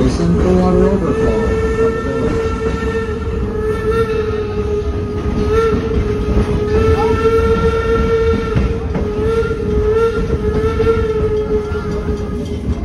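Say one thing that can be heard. A steam locomotive whistle blows long and steady.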